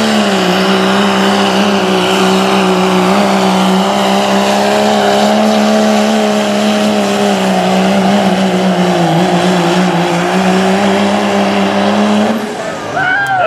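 A diesel truck engine roars loudly at full throttle.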